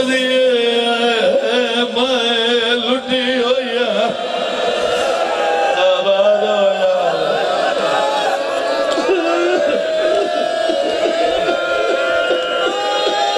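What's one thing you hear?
An elderly man speaks passionately into a microphone, heard through loudspeakers.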